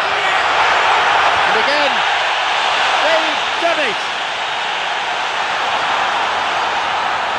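A stadium crowd cheers loudly after a goal.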